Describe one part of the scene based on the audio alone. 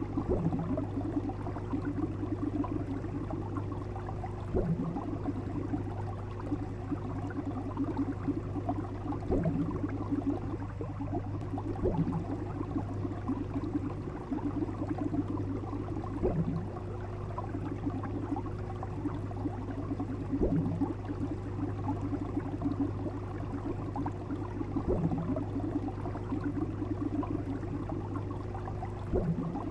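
Water gurgles and bubbles softly.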